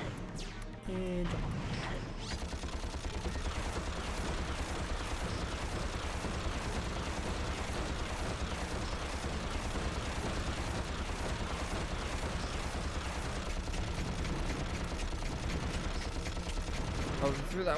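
A weapon fires in a fast, steady stream of shots.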